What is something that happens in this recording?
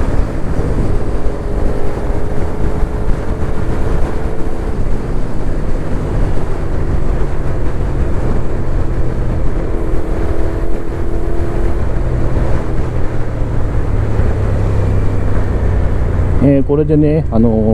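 A motorcycle engine hums steadily while riding at speed.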